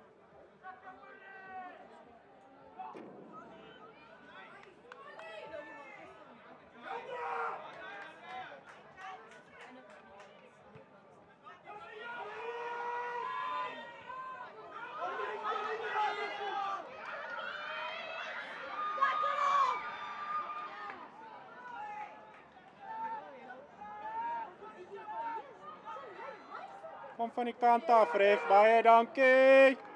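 Spectators nearby cheer and call out.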